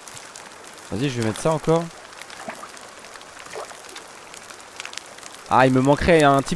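A small campfire crackles softly.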